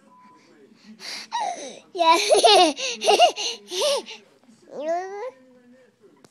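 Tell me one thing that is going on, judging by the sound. A baby squeals and laughs loudly close by.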